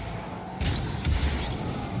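A game ball is struck with a thump.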